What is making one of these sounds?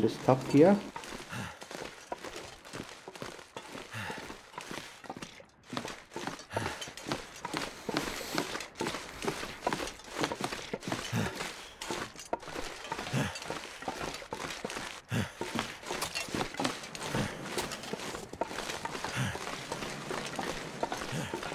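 Footsteps thud on wooden floorboards at a steady walking pace.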